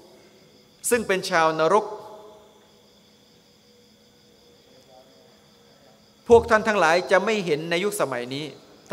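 A middle-aged man speaks calmly into a microphone, in bursts with pauses, echoing slightly in a large hall.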